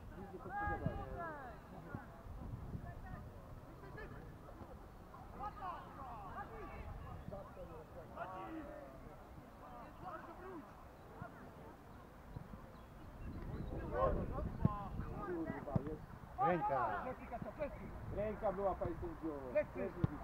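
Men shout to each other across an open playing field.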